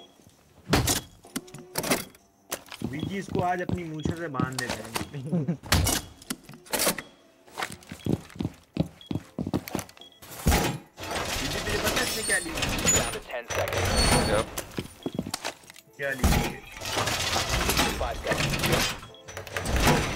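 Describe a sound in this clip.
Heavy metal panels clank and thud into place against walls.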